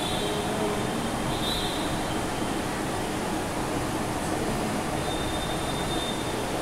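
A marker squeaks and scratches across a whiteboard.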